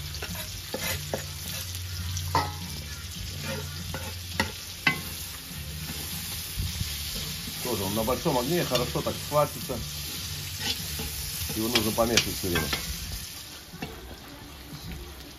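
Onions sizzle in a hot pan.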